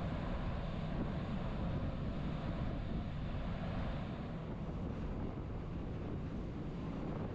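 A ship's engine rumbles low and steady.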